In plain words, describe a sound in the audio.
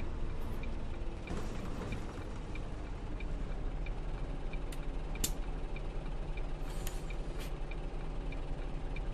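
A bus engine idles with a steady low rumble.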